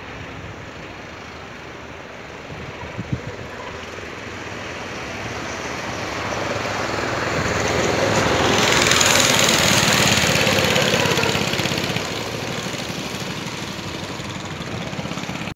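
A go-kart engine buzzes, growing louder as it approaches, roars past close by, then fades away.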